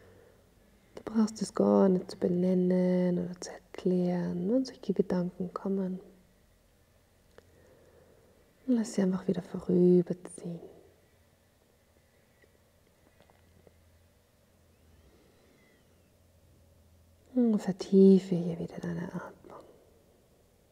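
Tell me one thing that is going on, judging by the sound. A woman speaks slowly and calmly into a close microphone, with long pauses.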